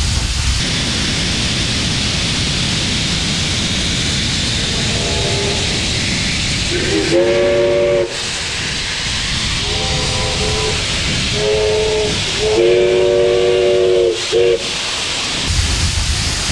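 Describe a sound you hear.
A steam locomotive roars and hisses close by.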